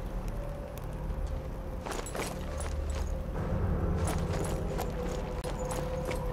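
Footsteps crunch on cobblestones.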